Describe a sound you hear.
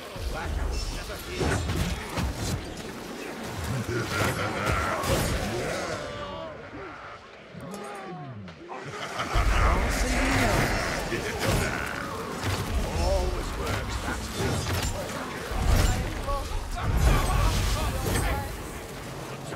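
Weapons clash and strike in a fierce fight.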